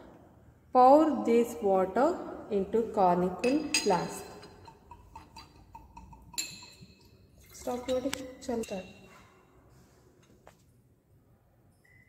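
Liquid swirls gently in a glass flask.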